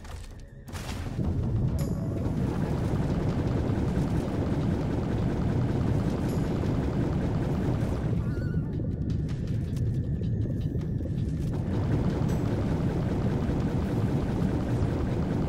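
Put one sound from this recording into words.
A low rushing rumble of water goes on steadily, as if heard underwater.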